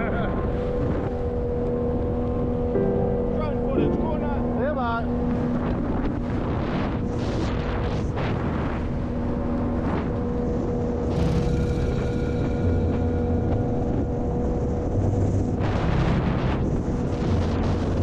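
Water rushes and splashes steadily against a boat.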